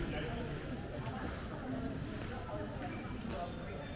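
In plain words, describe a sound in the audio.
A crowd of men and women chatters faintly in the distance.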